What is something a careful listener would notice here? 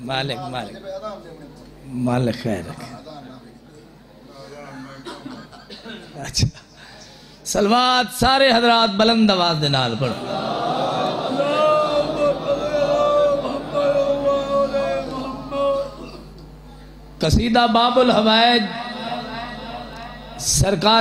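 A man speaks with passion into a microphone, heard through a loudspeaker in an echoing hall.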